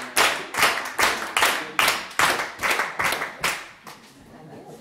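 An audience claps loudly.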